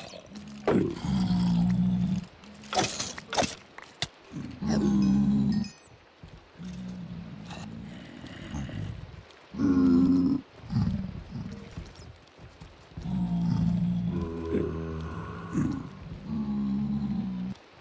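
Creatures grunt and groan repeatedly.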